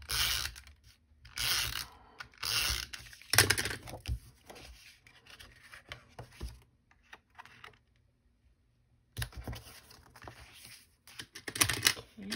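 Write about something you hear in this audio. Cardstock rustles and slides as hands move cards about.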